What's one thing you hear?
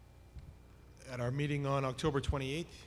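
A man speaks through a microphone in a large hall.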